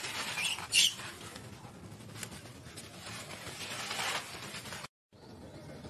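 Dry leaves rustle and crackle close by as an animal moves over them.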